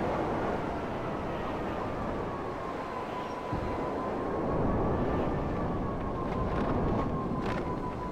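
A motorbike engine roars steadily.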